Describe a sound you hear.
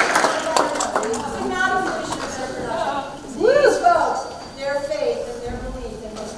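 Young people on stage cheer and call out.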